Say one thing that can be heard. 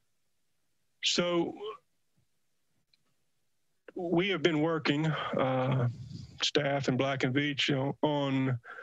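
A middle-aged man speaks calmly through a headset microphone over an online call.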